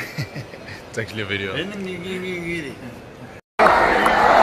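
A young man talks and laughs cheerfully close to a phone microphone.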